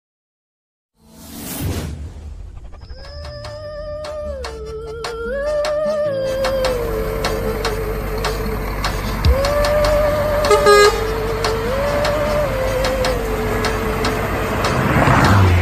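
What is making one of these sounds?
A truck engine hums and its pitch rises and falls as it shifts gears.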